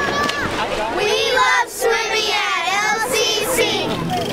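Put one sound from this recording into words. A group of young children shout excitedly together close by.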